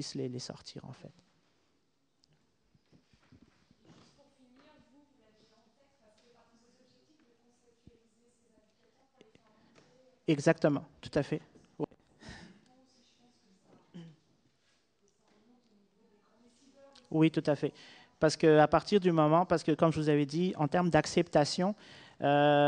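A man speaks calmly into a microphone, heard up close.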